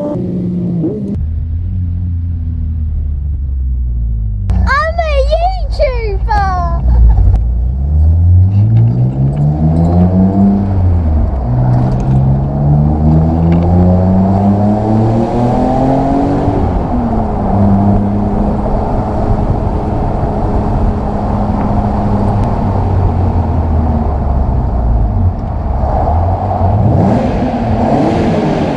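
A straight-six sports car engine accelerates through the gears.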